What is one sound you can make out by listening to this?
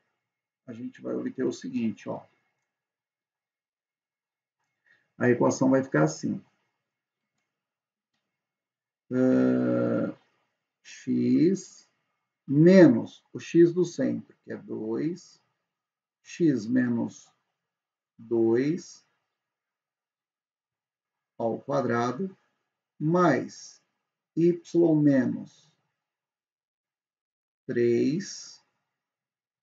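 A young man speaks calmly and closely into a microphone, in short phrases with pauses.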